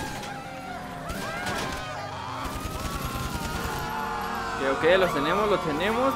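Car tyres skid on dirt.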